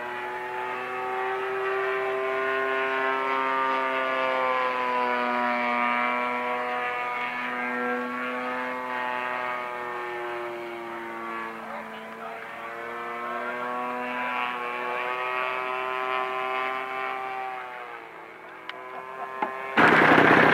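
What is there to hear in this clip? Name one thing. A small model plane engine buzzes overhead, its pitch rising and falling as it flies past.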